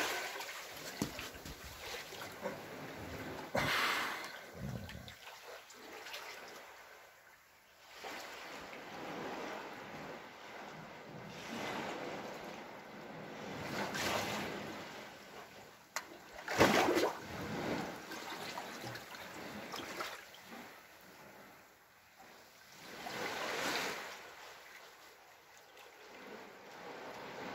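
Small waves lap and splash against rock.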